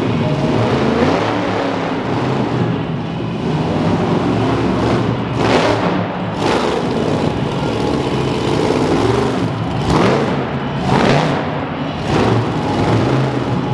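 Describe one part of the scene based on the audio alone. A monster truck engine roars loudly and revs up and down.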